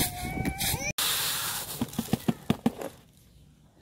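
Grain pours with a soft hiss into a stone bowl.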